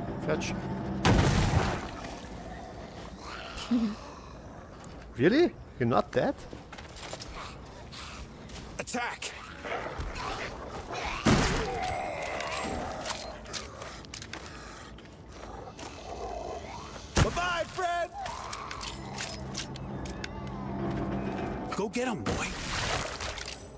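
A shotgun fires loud blasts.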